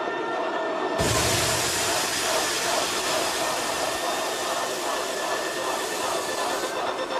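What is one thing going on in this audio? A large crowd chants loudly in unison.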